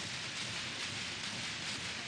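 Hands slap together in a quick high five.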